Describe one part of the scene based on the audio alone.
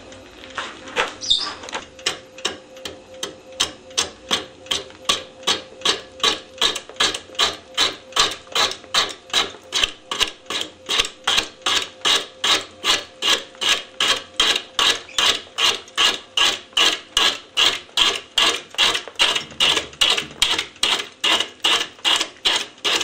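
A metal tool scrapes against a spinning wheel in quick, regular knocks.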